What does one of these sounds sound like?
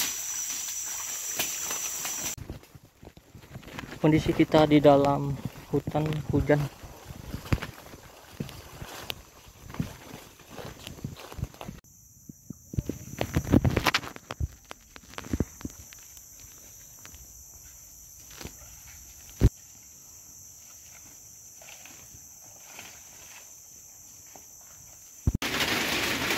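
Footsteps crunch and rustle through dense undergrowth.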